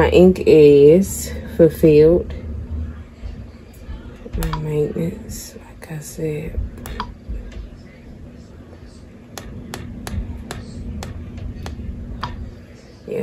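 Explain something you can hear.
A fingertip taps lightly on a touchscreen.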